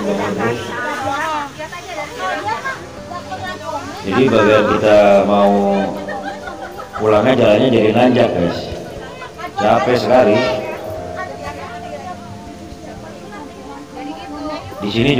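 Young women and men talk and chat nearby.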